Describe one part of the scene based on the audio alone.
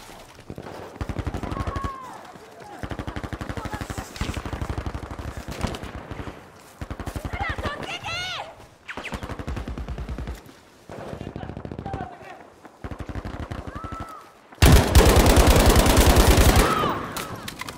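A submachine gun fires rapid bursts close by.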